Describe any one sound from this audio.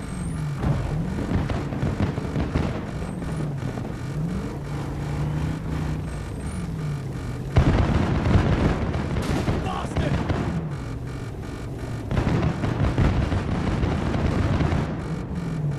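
Loud explosions boom nearby.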